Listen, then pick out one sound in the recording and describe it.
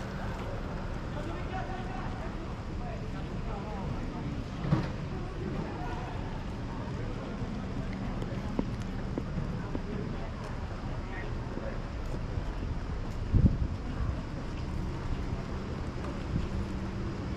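Footsteps walk on pavement outdoors.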